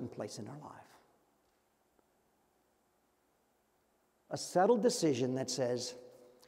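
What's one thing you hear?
An older man speaks calmly through a microphone, with pauses.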